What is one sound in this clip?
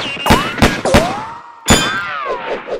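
A gun fires several loud shots with ringing echoes.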